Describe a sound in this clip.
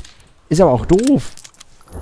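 A rifle clicks as it is reloaded.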